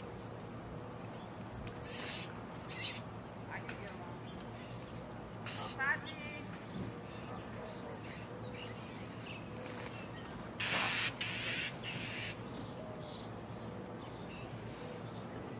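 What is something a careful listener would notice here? Birds chirp and cheep again and again close by.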